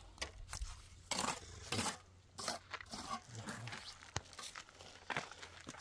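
A trowel scrapes and taps on wet cement.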